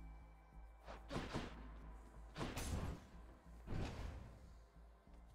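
Fiery blasts whoosh in short bursts.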